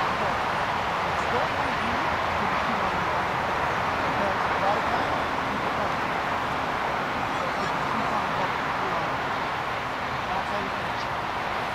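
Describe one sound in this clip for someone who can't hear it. A man talks calmly nearby outdoors.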